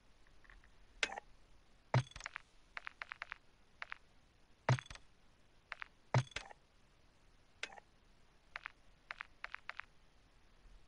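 Short electronic clicks and swishes sound as menu options are picked.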